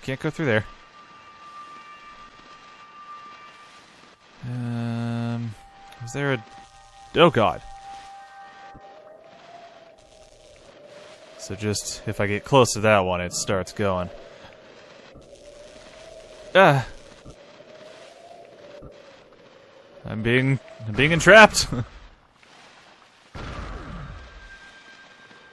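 A rolling ball in a video game boosts with short electronic whooshes.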